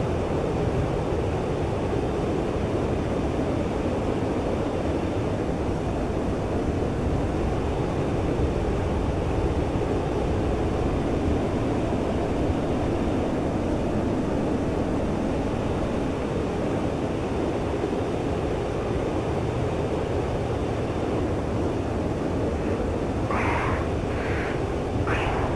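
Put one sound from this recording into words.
A jet engine roars steadily in the cockpit.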